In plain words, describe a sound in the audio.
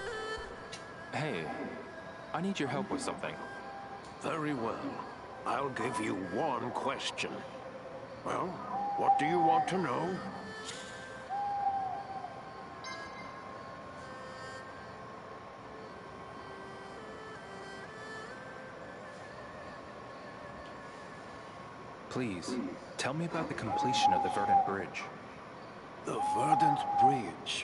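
An elderly man speaks in a raspy, animated voice.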